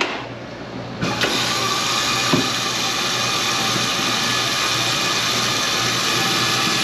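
Water runs from a tap into a metal sink with a steady splashing rush.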